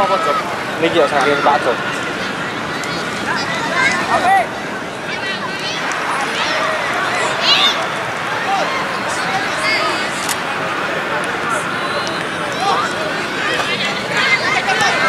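A crowd of spectators chatters and cheers in the distance.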